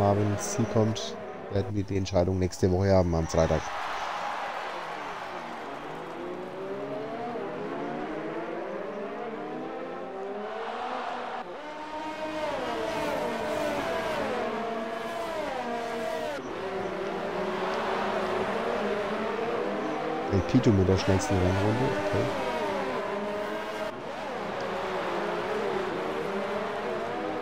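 Racing car engines whine at high revs and shift pitch up and down as the cars speed past.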